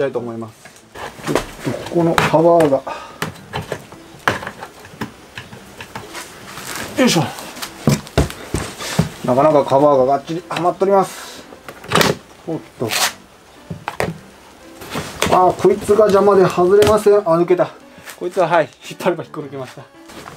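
Plastic parts knock and click as they are pulled apart.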